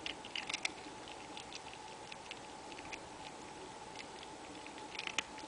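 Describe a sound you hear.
A cat crunches dry food from a hand, chewing with quick small crackles.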